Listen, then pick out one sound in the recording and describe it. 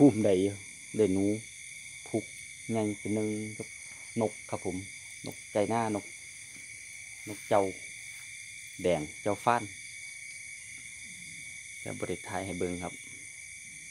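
A cow moos loudly nearby.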